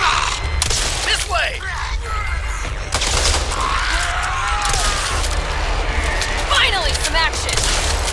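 Zombies snarl and groan nearby.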